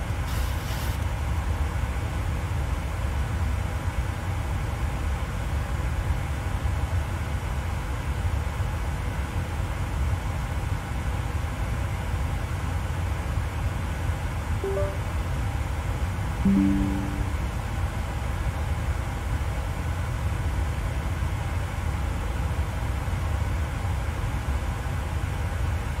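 Jet engines hum in a low, steady drone.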